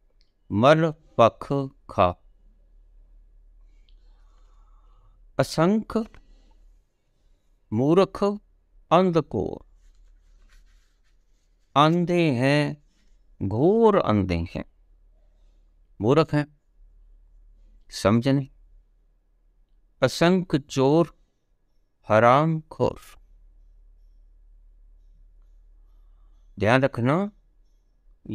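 An elderly man speaks calmly close by, in short bursts with long pauses.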